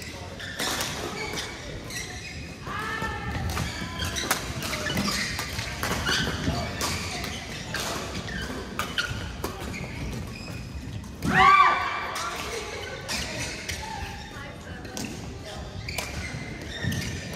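Shuttlecocks are struck sharply with rackets, again and again, in a large echoing hall.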